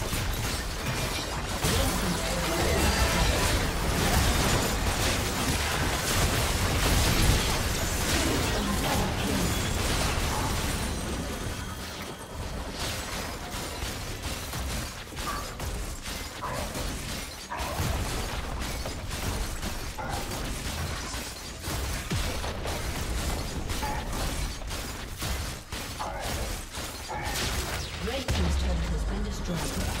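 Magic blasts and hits crackle and burst in a busy fight.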